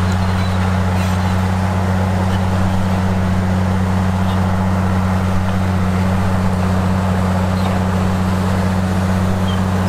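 A bulldozer engine rumbles steadily.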